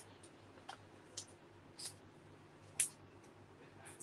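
Scissors snip.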